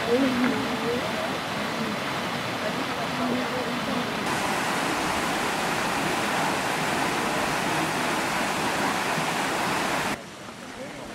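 Water rushes steadily down a stone cascade.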